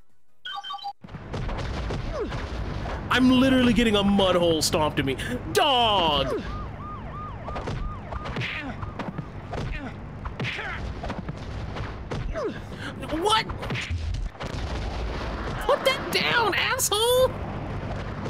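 Punches and kicks land with dull thuds in a game fight.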